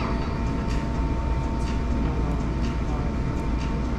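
A man chews food.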